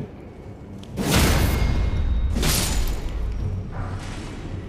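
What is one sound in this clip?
A sword swings and strikes with heavy whooshing blows.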